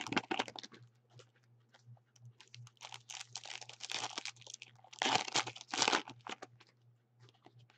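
Hands tear open a foil trading card pack.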